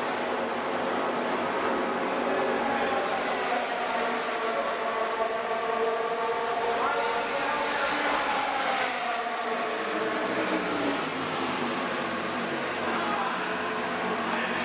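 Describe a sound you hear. Men chat quietly nearby.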